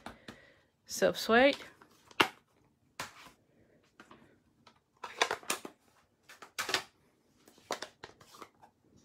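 Plastic blocks clack down on a hard surface.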